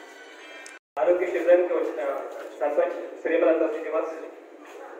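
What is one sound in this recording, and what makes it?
A man speaks with animation into a microphone through a loudspeaker.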